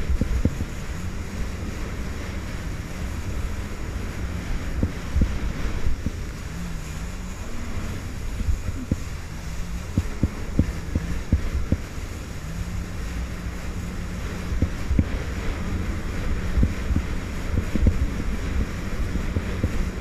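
A jet ski's hull slaps and thumps against waves.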